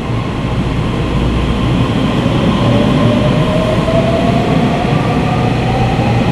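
A train's wheels squeal on the rails as it slows.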